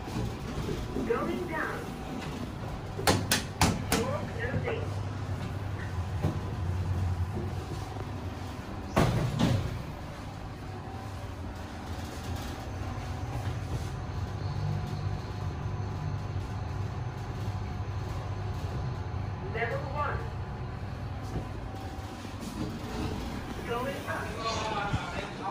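Lift doors slide and rumble as they move.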